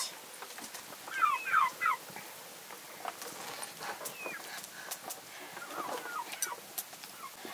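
A baby babbles.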